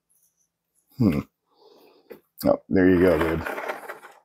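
A plastic container clacks as it is lifted and set down.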